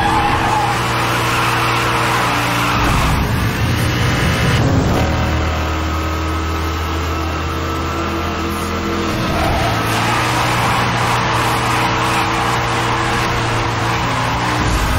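A car engine roars at high revs, shifting pitch as it speeds up and slows.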